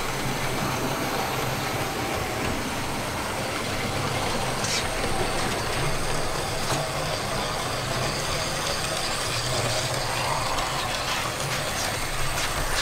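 A model train rumbles steadily along its track.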